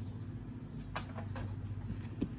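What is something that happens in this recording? A wooden carving knocks softly against a wooden box.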